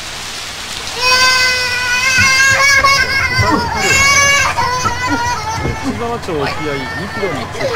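A small child cries loudly.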